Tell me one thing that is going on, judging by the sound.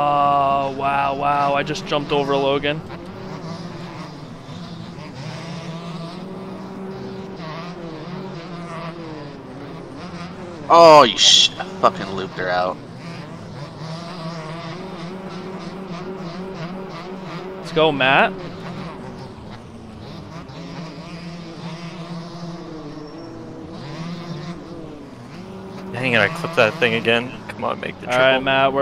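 A dirt bike engine revs high and whines, rising and falling with each gear change.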